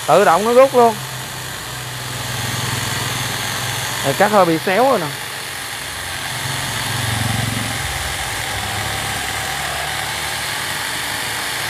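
An electric chainsaw whirs steadily as it cuts through a wooden log.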